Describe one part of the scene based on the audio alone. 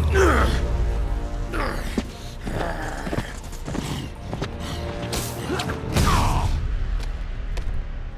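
Heavy punches and blows land with thuds during a scuffle.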